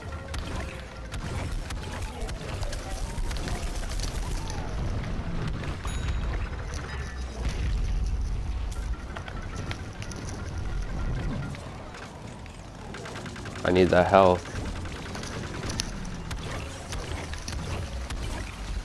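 Video game blaster shots fire.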